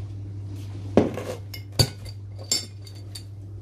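A glass jar clinks against a countertop.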